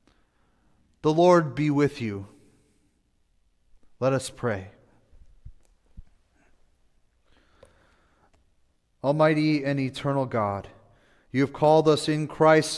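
A man chants slowly into a microphone in a reverberant hall.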